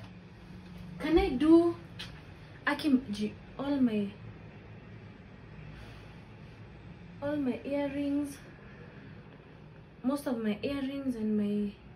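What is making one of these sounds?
A young woman speaks calmly and close by, in short phrases.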